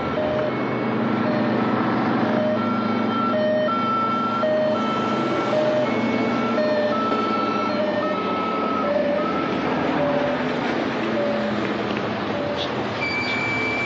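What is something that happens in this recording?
A van's engine rumbles as it drives slowly by.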